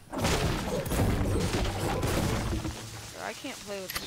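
A pickaxe strikes wood with hard knocks.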